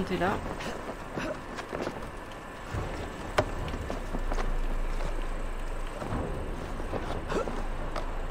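Hands grip and scrape on wooden beams while climbing.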